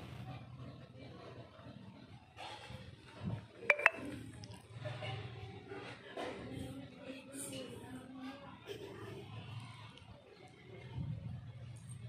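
Chess pieces click softly onto a board.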